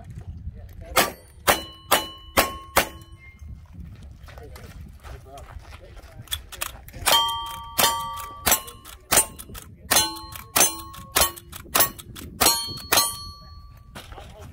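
Bullets ring on steel targets.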